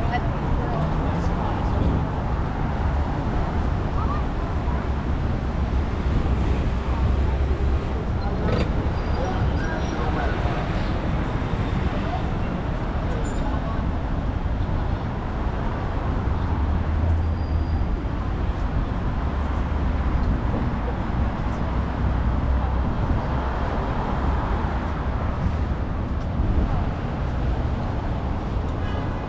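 Steady city traffic rumbles along a street outdoors.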